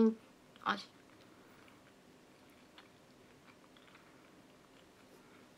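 A young woman chews and munches on food.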